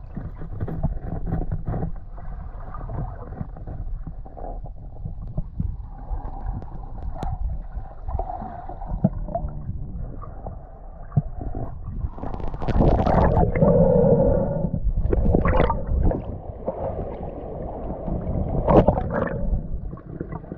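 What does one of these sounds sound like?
Muffled underwater sloshing and bubbling fill the sound.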